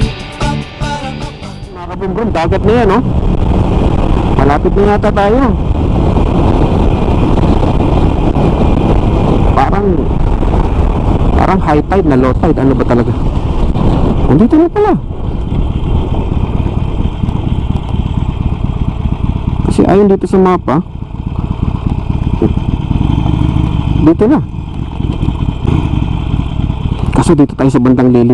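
A motorcycle engine rumbles steadily and revs up between gear changes.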